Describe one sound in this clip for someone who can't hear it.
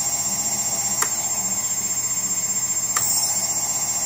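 A small switch clicks twice.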